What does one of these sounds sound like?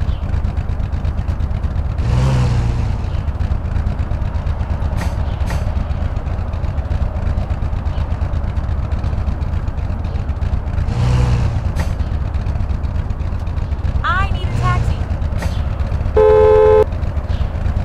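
A sports car engine hums steadily.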